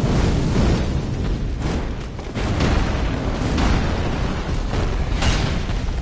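Heavy blows thud and clash.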